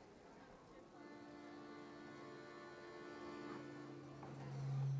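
An accordion plays a tune.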